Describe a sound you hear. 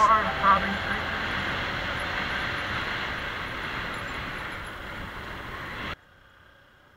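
A motorcycle engine drones steadily.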